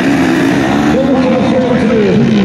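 A motorcycle engine revs in the distance.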